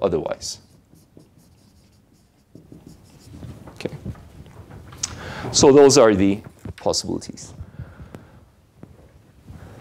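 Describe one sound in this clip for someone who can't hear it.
A young man lectures calmly through a microphone in an echoing room.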